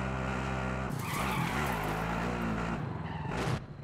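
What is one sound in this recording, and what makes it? Tyres skid on pavement.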